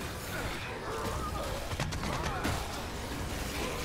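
A monster growls and snarls.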